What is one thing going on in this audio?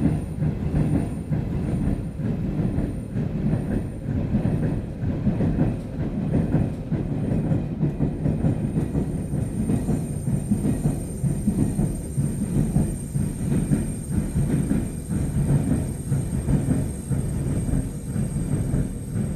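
A subway train rumbles steadily along the tracks, heard from inside the car.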